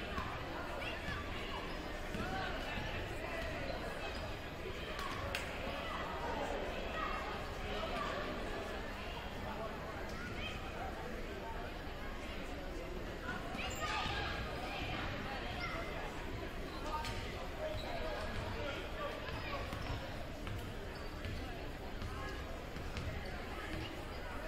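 A crowd of people chatters in a large echoing gym.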